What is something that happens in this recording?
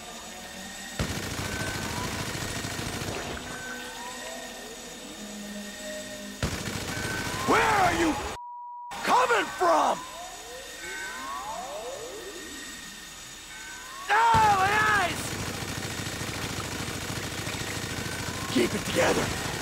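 A rotary machine gun fires in long, rapid roaring bursts.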